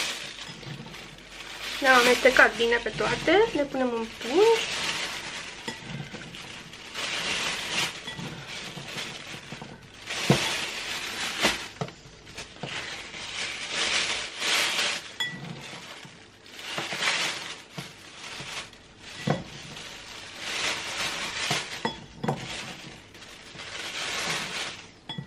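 A plastic bag crinkles and rustles as hands handle it.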